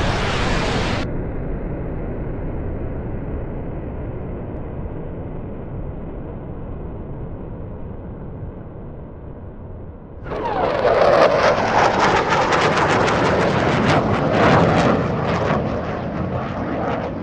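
A jet engine rumbles overhead and grows to a loud roar.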